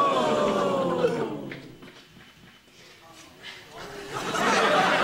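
A young woman exclaims in surprise nearby.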